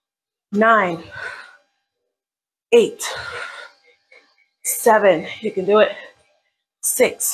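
A woman speaks with animation in short bursts close by.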